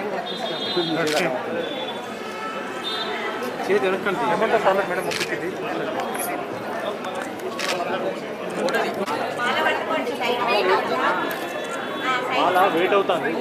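A crowd of men and women chatter and call out nearby.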